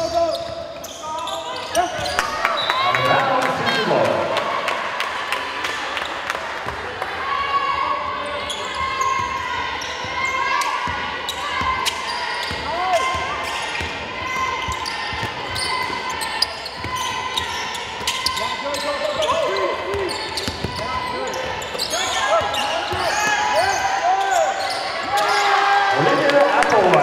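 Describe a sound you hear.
Basketball shoes squeak sharply on a hard court.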